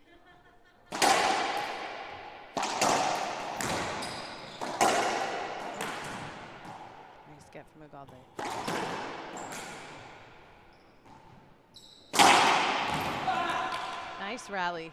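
A racquet smashes a ball against the walls, ringing out in an echoing court.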